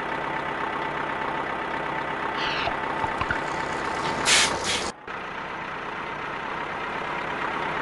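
A cartoon truck engine hums steadily.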